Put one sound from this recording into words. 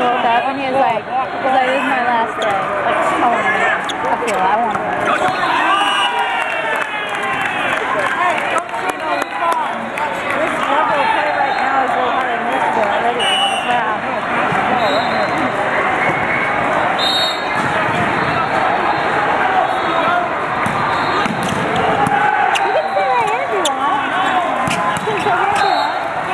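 A crowd of men and women chatters throughout a large echoing hall.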